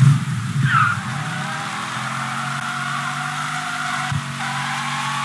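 Tyres screech on the road as a car skids.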